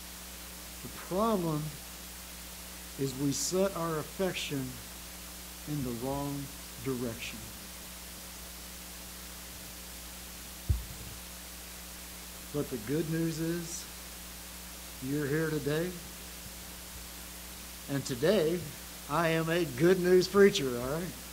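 An elderly man speaks slowly and calmly through a microphone, with long pauses.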